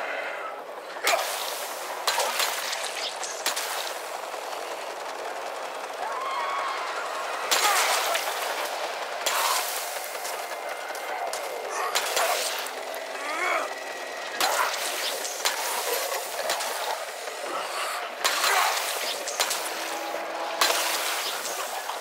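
A wooden bat thuds into zombies again and again.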